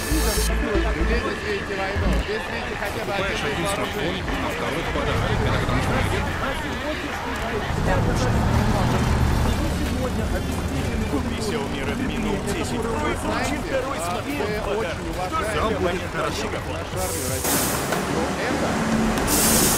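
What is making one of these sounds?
A bus engine hums as it drives slowly.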